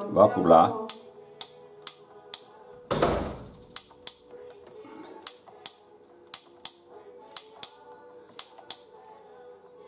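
Buttons on a small device click sharply, one after another.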